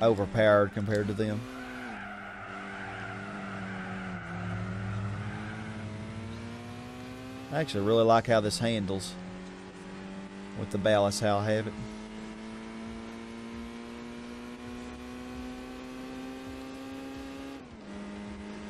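A small car engine hums steadily and rises in pitch as the car speeds up.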